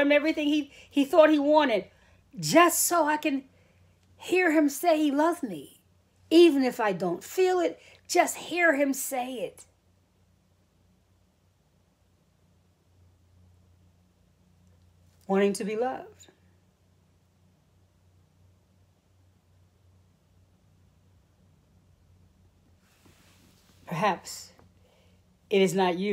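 A middle-aged woman speaks calmly and close to the microphone, with pauses.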